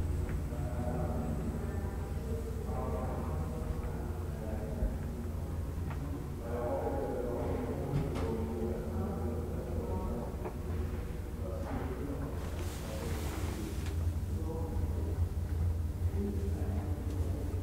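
An old lift hums and rumbles steadily as it moves.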